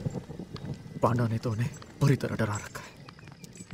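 A young man speaks tensely, close by.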